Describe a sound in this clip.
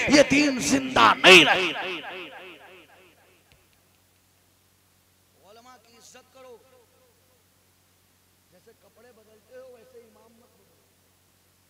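A man speaks slowly and with feeling into a microphone, in a large echoing space.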